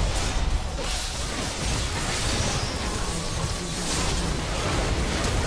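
Game spell effects crackle and whoosh in a fight.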